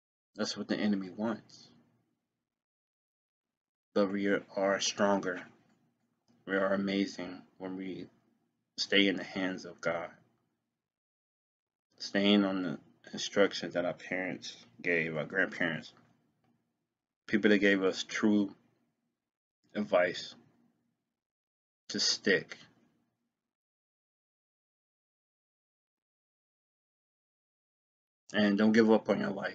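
A young man speaks calmly and close to the microphone, in short bursts with pauses.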